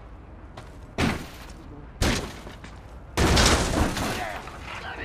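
A metal mesh gate rattles and scrapes open.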